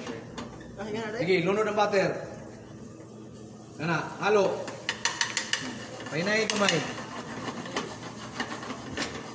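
A wooden spatula scrapes and taps against a frying pan.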